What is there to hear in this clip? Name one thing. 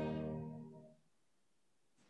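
A string quartet holds a final chord that fades away in an echoing hall.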